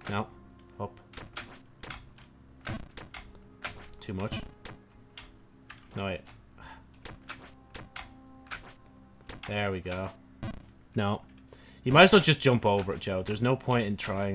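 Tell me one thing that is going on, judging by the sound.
Short electronic game sound effects click and blip repeatedly.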